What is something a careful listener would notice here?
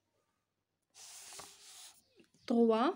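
Paper rustles and slides.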